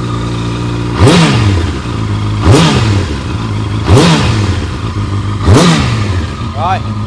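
A motorcycle engine revs sharply several times.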